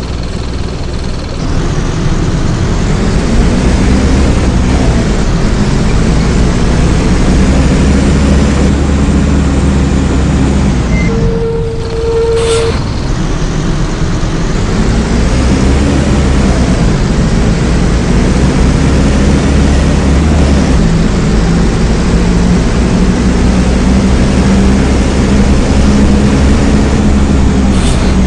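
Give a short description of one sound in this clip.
A bus engine hums and rumbles steadily, rising and falling as the bus drives.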